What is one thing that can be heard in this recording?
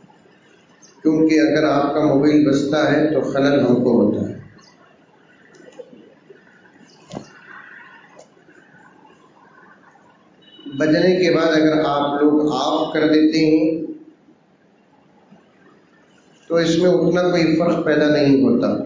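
An elderly man preaches with emotion into a microphone, heard through a loudspeaker in bursts with long pauses.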